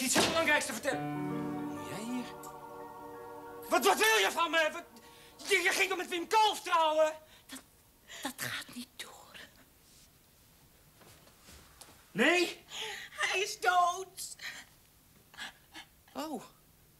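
A middle-aged woman speaks in an upset voice.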